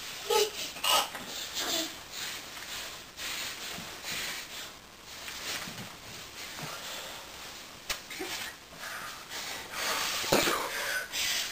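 A bedspread rustles as a small child tugs at it.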